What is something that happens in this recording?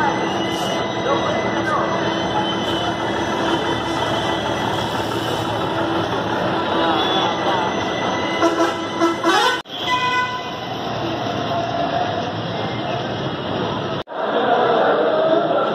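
A busy crowd murmurs outdoors.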